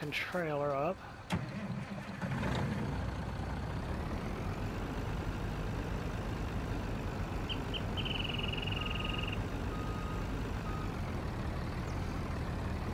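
A heavy truck engine idles with a low steady rumble.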